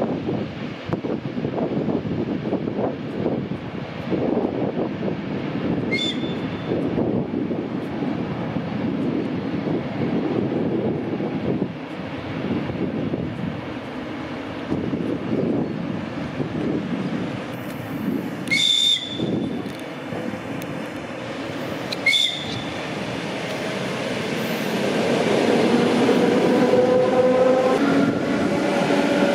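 An electric commuter train approaches on the rails and passes close by with a rising motor whine.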